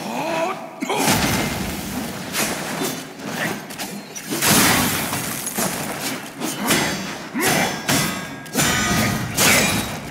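Fire whooshes and crackles in bursts.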